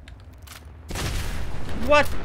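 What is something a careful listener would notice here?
A gun is reloaded with metallic clicks and clacks.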